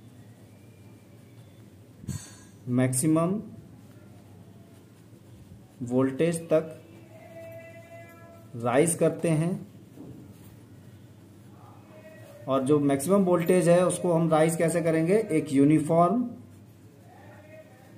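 A pen scratches on paper as someone writes.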